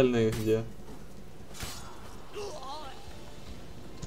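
A sword swishes and strikes during a fight.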